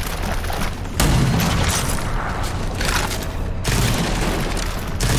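Gunshots boom loudly several times.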